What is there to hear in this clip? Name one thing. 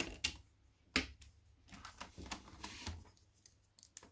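A plastic part snaps into place with a click.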